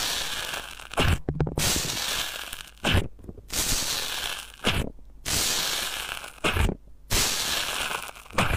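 Wet foam squelches and pops with each poke.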